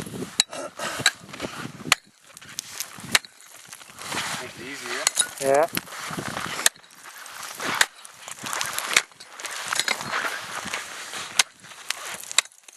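An axe chops and scrapes at ice with sharp knocks.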